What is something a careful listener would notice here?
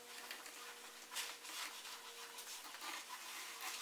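A pencil scratches softly across wood.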